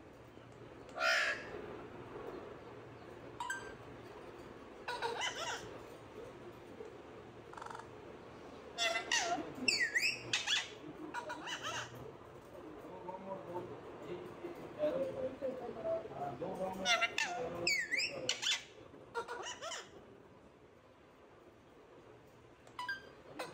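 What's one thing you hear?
Parrots squawk and screech loudly at close range.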